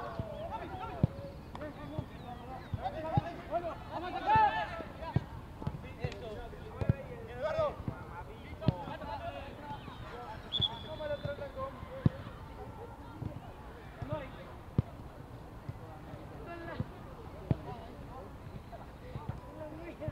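Players kick a football with sharp thuds.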